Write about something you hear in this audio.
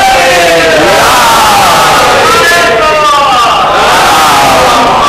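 A crowd of men shout slogans loudly together.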